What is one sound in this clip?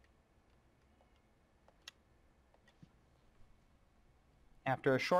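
Phone keys click as a number is dialed.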